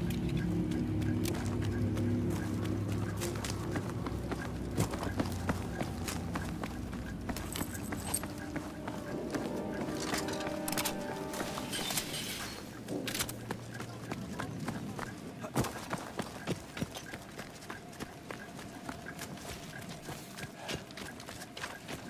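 Footsteps crunch over loose gravel and rubble.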